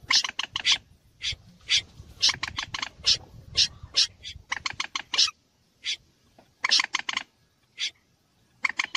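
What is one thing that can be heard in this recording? A bird calls in loud, harsh bursts, again and again.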